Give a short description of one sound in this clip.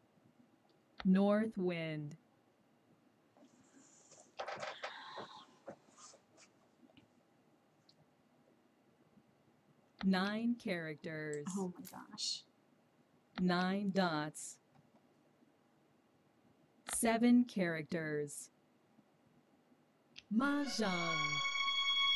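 A woman speaks calmly and closely into a microphone, in short bursts.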